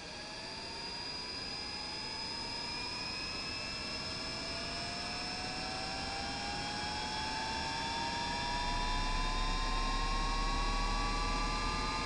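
A jet engine spins up with a rising whine and a growing roar.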